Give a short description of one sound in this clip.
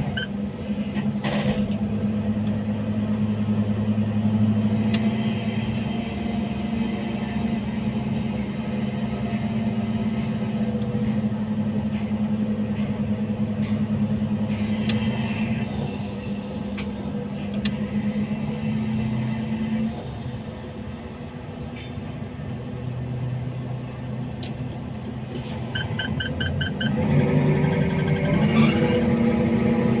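A crane engine drones as the hook lowers.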